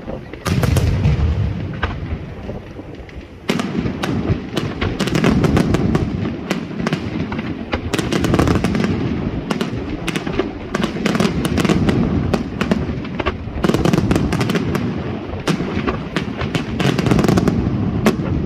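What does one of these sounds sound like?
Fireworks crackle and fizzle after bursting.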